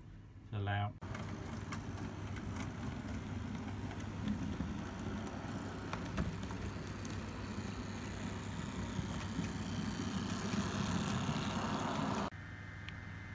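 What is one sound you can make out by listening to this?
A model locomotive hums and rumbles steadily as it rolls along the track.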